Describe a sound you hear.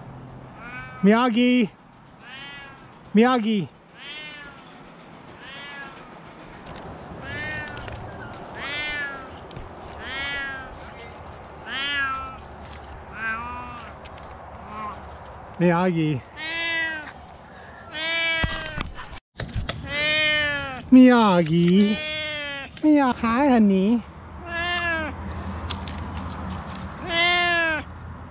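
A cat meows loudly and repeatedly.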